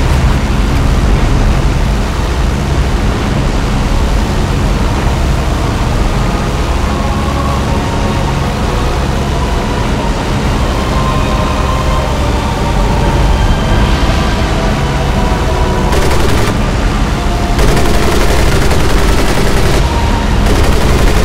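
A propeller plane's engine drones steadily throughout.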